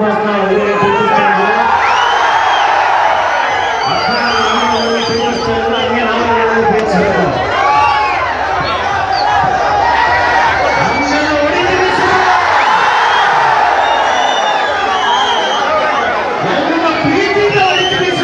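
A young man shouts into a microphone over loudspeakers.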